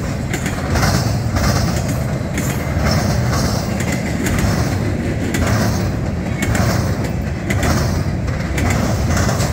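A freight train rumbles steadily past, close by.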